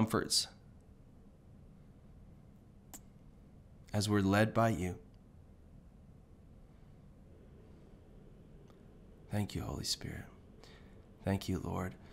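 A young man speaks calmly and closely into a microphone, in short bursts with pauses.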